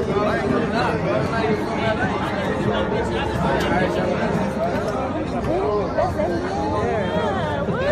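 Young men talk loudly over one another close by.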